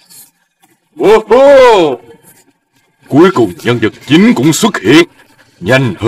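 A cartoon creature's voice talks with animation.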